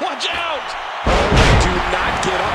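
A heavy body slams onto a wrestling ring with a loud thud.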